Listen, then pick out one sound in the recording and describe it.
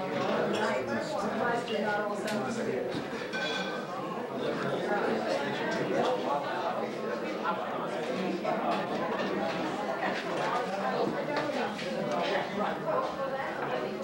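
A crowd of adult men and women chatters loudly indoors.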